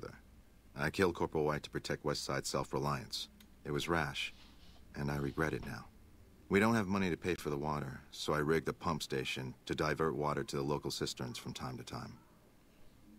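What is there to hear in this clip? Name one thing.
A man speaks calmly and clearly, close by, with a slightly weary tone.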